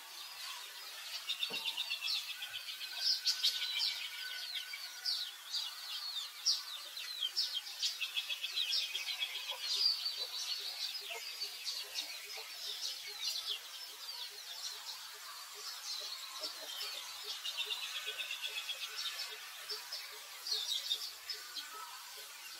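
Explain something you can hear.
A baby monkey squeaks with short high cries.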